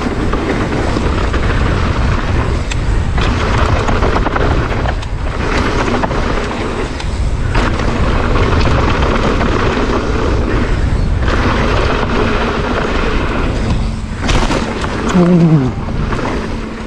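Knobby mountain bike tyres crunch and rattle over a dry dirt and gravel trail.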